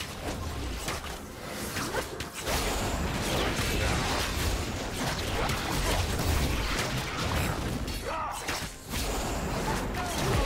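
Game spell effects and attacks clash and crackle in quick bursts.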